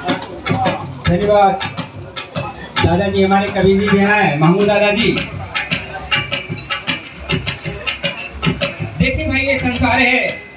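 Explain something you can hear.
A man sings loudly into a microphone through a loudspeaker.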